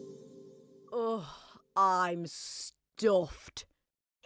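A man and a woman with cartoon voices laugh loudly.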